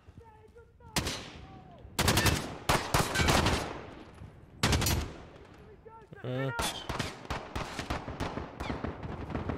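A rifle fires in loud, echoing bursts.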